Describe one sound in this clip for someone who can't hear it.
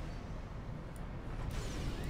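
Game turrets fire zapping laser shots.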